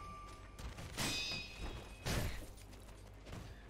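Swords clash with sharp metallic rings.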